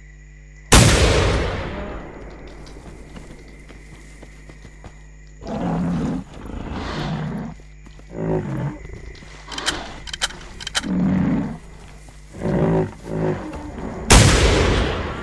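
A shotgun fires a loud blast that echoes away.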